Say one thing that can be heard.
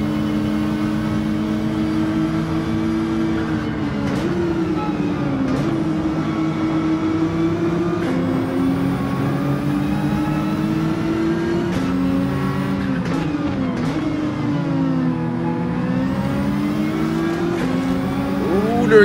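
A racing car engine roars steadily, revving up and dropping as gears shift.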